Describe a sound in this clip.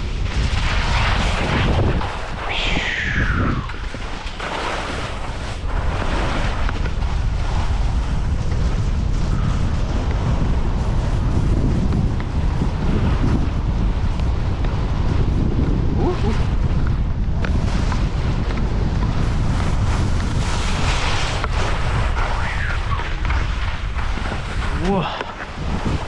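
Wind rumbles loudly past close by.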